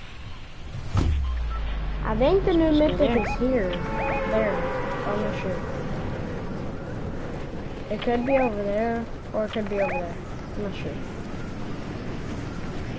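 A glider whooshes through the air in a video game.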